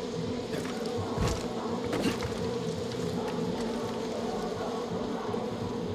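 Loose wooden boards clatter underfoot.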